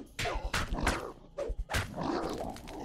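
Heavy blows land with sharp thuds in quick succession.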